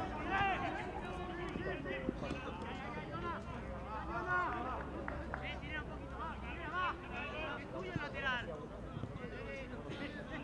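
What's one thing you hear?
Young players shout to each other across an open outdoor pitch.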